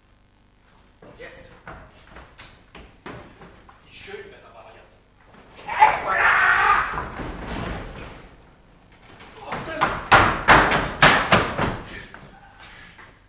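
Footsteps thud across a wooden stage.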